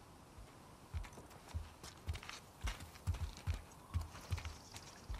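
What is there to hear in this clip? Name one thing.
Footsteps thud on a hard floor and then on ground outdoors.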